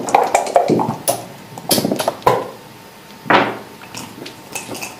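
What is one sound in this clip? Dice rattle in a cup and tumble onto a board.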